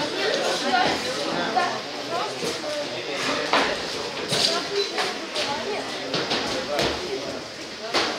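Gloves thud on bodies as boxers exchange punches.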